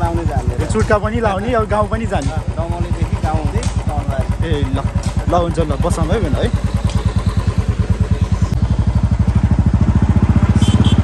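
A motorcycle engine idles with a steady low throb.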